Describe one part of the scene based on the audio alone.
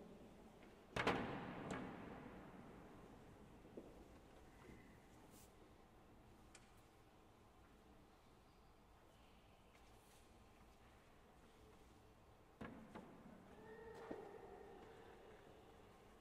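A pipe organ plays loud chords that ring out in a large echoing hall.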